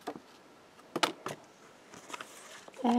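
Small plastic items knock softly as a hand handles them.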